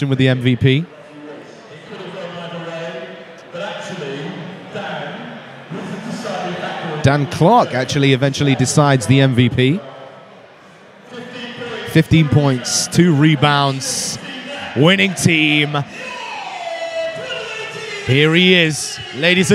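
A man speaks with animation into a microphone over loudspeakers in a large echoing hall.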